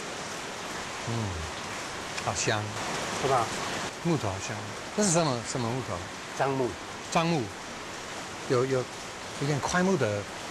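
A man asks questions calmly, close by.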